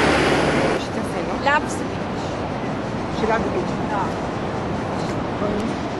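An elderly woman talks nearby outdoors.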